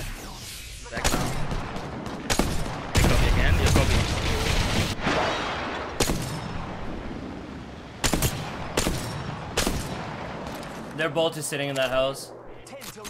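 A rifle fires loud, sharp shots that echo.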